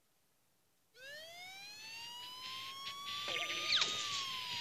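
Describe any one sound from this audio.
Game sound effects sweep upward in pitch and grow loud.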